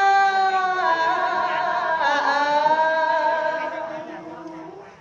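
A young woman sings a long, wavering note up close, and the voice slowly fades.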